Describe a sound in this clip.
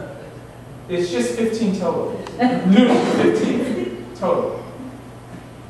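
A man speaks calmly in reply.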